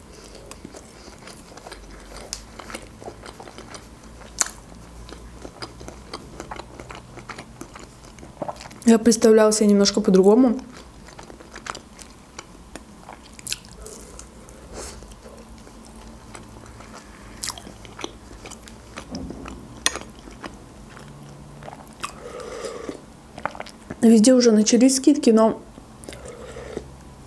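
A young woman chews food with soft, crisp smacking sounds close to a microphone.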